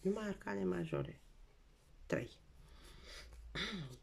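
A playing card is set down on a table with a soft tap.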